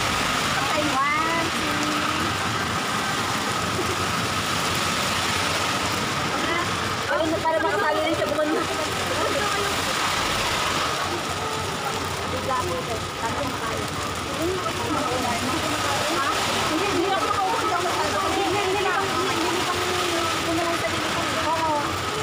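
Several women chat and laugh close by.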